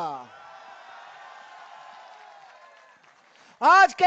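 A large crowd cheers.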